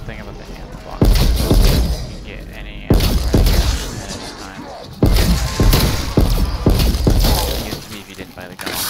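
A gun fires in loud, rapid bursts.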